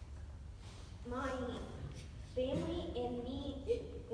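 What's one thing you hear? A young girl speaks into a microphone, heard through a loudspeaker in an echoing room.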